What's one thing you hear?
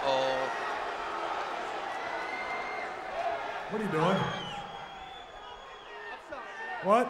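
A large arena crowd cheers and roars.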